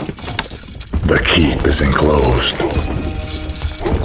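A wooden structure clatters into place.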